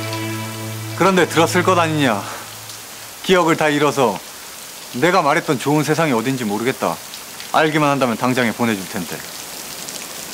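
A young man speaks slowly in a choked, tearful voice close by.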